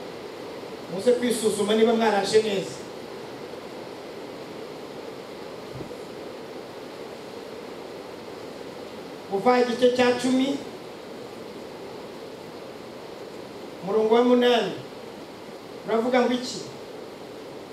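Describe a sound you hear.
A man speaks into a microphone in short, loud phrases with long pauses between them.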